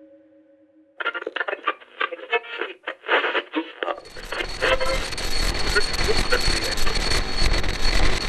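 A small radio plays muffled, tinny sound with crackling static.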